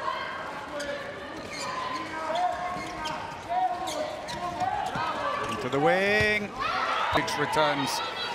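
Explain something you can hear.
A crowd cheers and chants in a large echoing hall.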